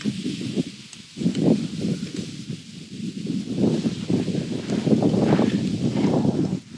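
Food sizzles on a wire grill over hot coals.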